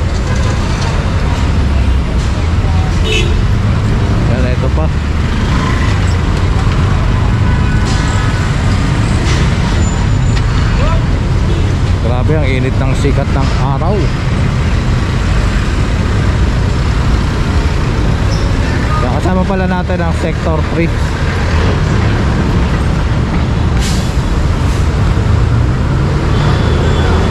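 Traffic rumbles and engines idle steadily on a busy street outdoors.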